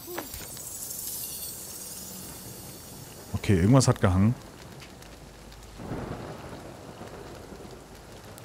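A campfire crackles and hisses softly.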